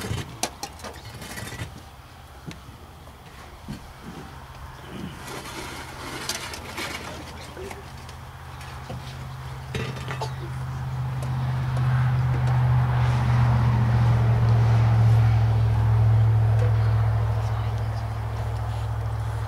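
A crowd murmurs quietly outdoors.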